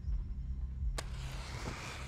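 A lighter clicks and sparks into flame.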